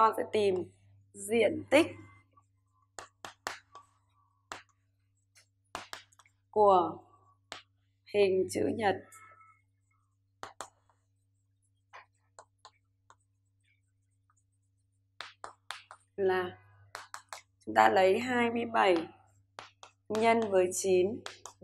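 A woman speaks calmly and clearly, close by, in short phrases.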